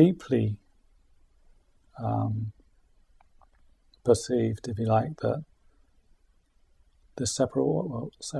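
A man speaks calmly and thoughtfully into a close microphone, with pauses.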